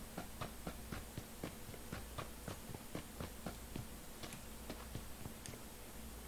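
Footsteps run quickly over dirt ground.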